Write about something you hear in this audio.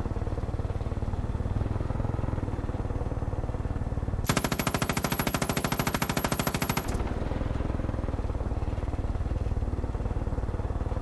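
A helicopter's engine drones and its rotor thumps steadily.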